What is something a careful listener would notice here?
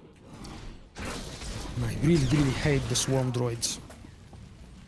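Energy blades swing and strike in a fight.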